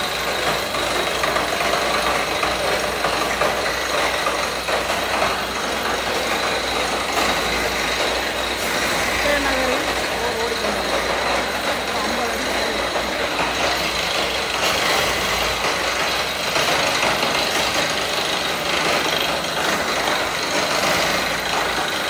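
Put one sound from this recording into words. A drilling machine runs steadily with a loud rumble.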